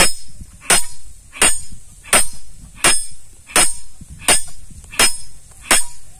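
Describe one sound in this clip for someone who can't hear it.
A sledgehammer strikes a steel bar with sharp, ringing metallic clanks at a steady, regular pace.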